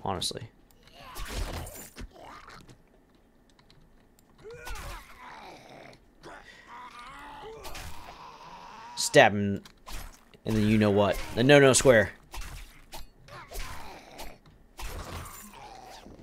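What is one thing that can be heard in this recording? A knife slashes and strikes flesh with wet thuds.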